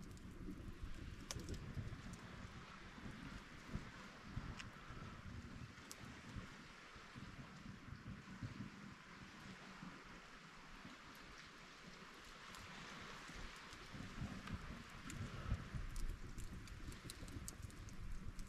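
A wood fire crackles softly.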